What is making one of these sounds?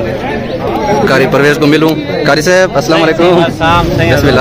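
A man speaks loudly amid a pressing crowd, close by.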